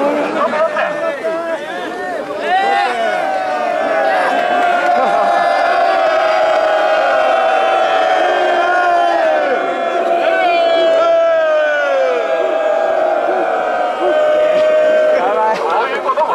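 A crowd cheers and shouts with excitement.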